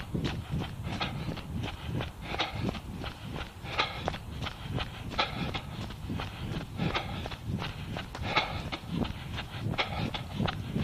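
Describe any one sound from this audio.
Footsteps thud steadily at a running pace on a wet road.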